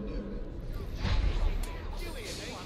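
A body thuds down onto a metal floor.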